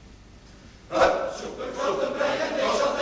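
A large male choir bursts into loud singing in an echoing hall.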